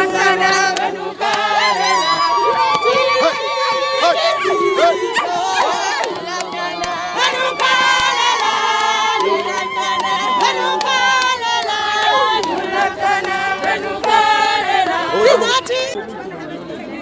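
A crowd of women chants and sings loudly together.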